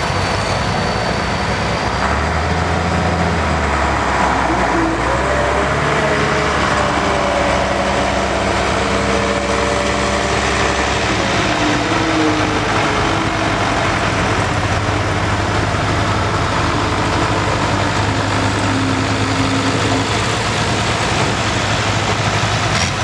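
A tractor engine idles loudly and rumbles steadily.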